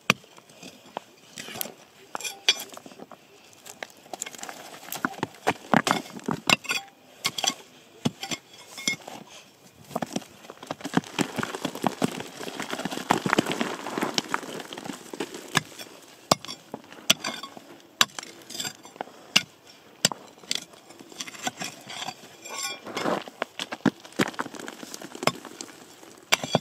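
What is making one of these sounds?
A metal digging bar strikes and scrapes into stony ground.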